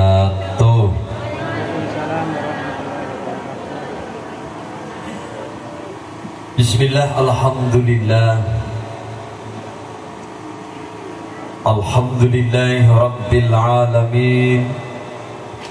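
A keyboard plays sustained notes through a loudspeaker.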